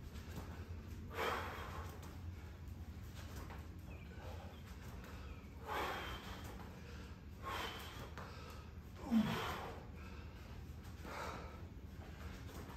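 A woman breathes out hard in short, regular bursts.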